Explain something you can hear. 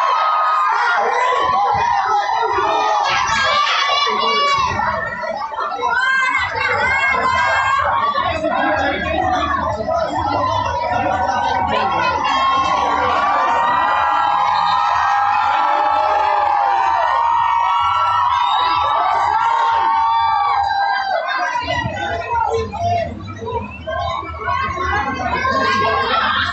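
Many men shout and argue at once in a crowd outdoors.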